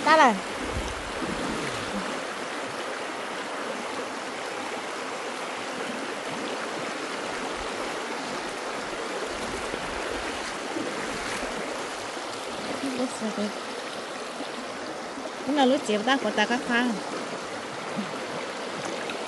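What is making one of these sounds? Water splashes around feet wading through a shallow stream.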